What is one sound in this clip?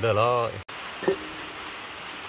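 A ladle knocks against a metal bowl.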